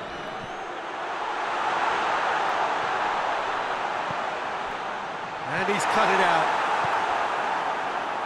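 A stadium crowd roars as an attack nears the goal.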